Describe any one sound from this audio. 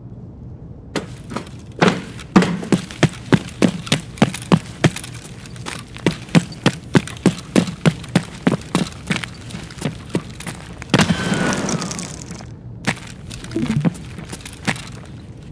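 Footsteps crunch steadily on gravel and debris.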